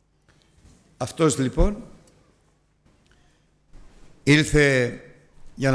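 An older man speaks with emphasis through a microphone in a room with some echo.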